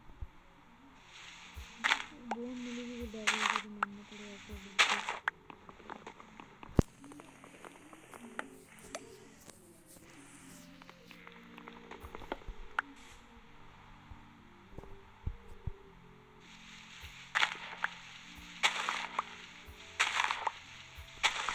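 Blocks of dirt and wood crunch as they are broken, with soft repeated thuds.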